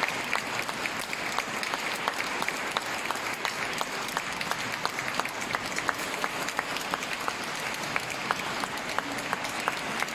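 A man claps his hands close by.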